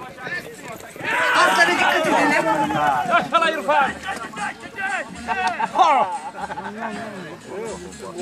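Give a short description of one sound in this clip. A crowd of men shouts and cheers loudly.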